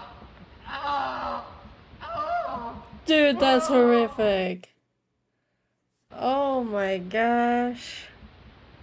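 A young woman talks with animation into a microphone, her voice rising and falling.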